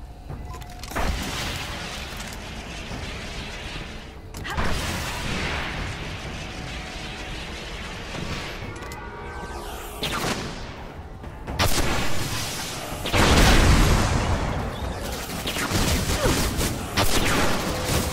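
A weapon fires bright blasts with loud booms.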